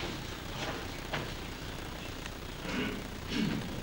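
A man speaks quietly at a distance in an echoing hall.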